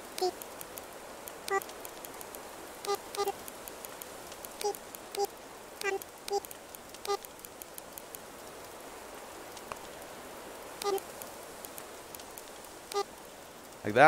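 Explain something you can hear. Short soft blips sound as letters are typed on a game keyboard.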